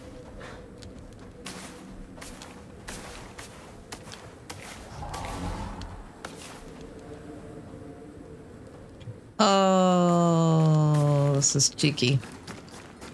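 Footsteps crunch on snow and gravel.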